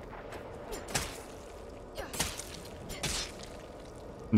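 Heavy stomping blows thud against a body.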